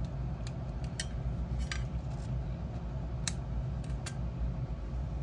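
A screwdriver tip scrapes and clicks against a metal bracket.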